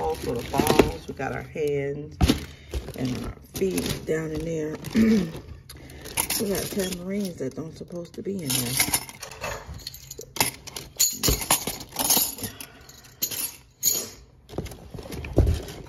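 A plastic bag rustles and crinkles as a hand rummages through it.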